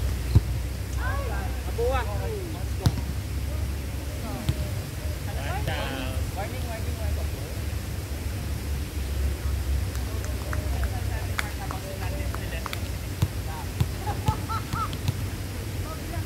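Young men and women call out to each other outdoors.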